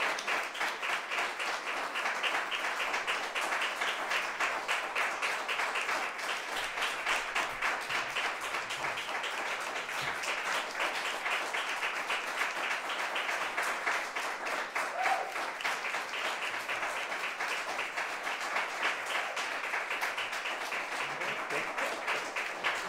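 An audience claps steadily and loudly throughout.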